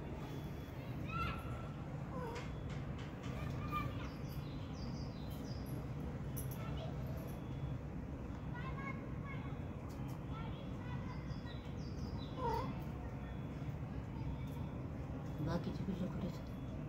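A small kitten mews softly, again and again.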